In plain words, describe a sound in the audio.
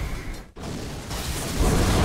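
An electric bolt zaps and crackles.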